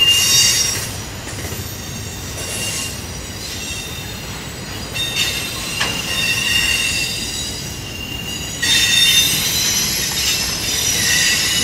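Train wheels squeal on the rails in high, shifting tones.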